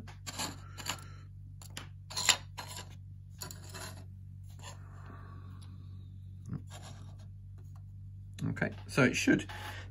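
Light card pieces tap and click on a hard surface.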